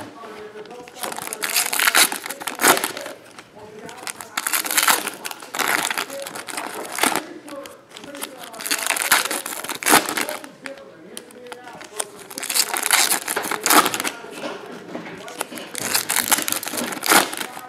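Foil wrappers crinkle and rustle as they are torn open.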